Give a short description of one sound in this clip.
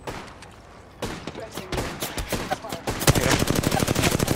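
An automatic rifle fires rapid bursts of gunshots.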